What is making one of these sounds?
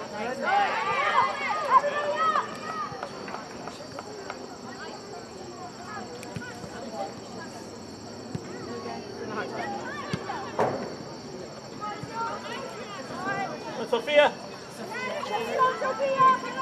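A soccer ball thuds off a foot.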